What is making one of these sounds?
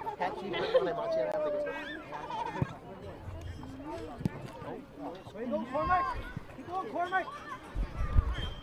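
Young boys shout and call out to each other across an open field.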